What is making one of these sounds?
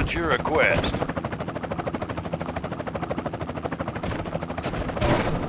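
A helicopter's rotor chops steadily.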